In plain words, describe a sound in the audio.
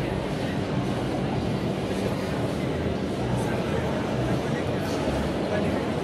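A crowd of people chatters quietly in the background.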